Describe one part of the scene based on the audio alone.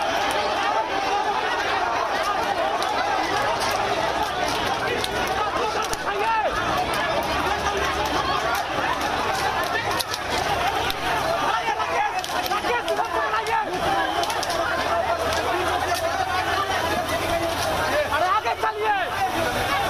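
A large crowd shouts and chants loudly outdoors.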